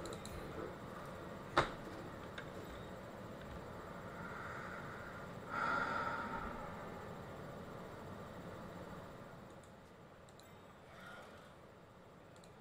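A young man talks calmly and close into a microphone.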